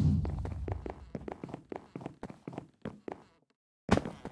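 Footsteps tap quickly on wooden planks.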